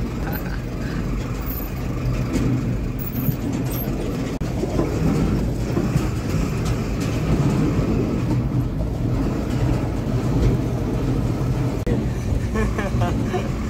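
A heavy engine rumbles steadily close by.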